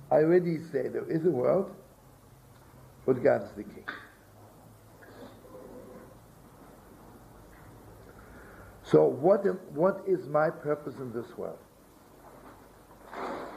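An elderly man speaks calmly into a nearby microphone, in short bursts with pauses.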